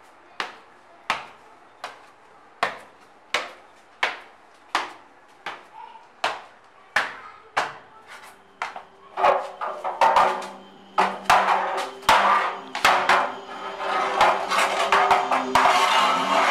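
Footsteps climb slowly and steadily up hard stairs, echoing in an enclosed space.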